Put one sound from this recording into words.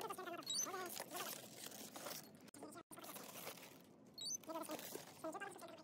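Plastic bottles crinkle and rattle as they are handled.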